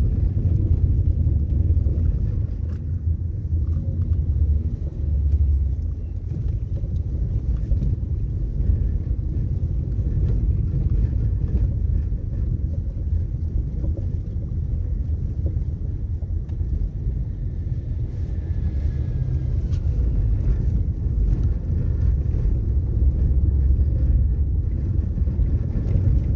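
Tyres rumble over cobblestones.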